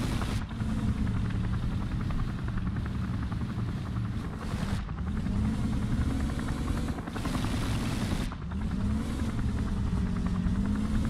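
A tank engine rumbles and revs up and down.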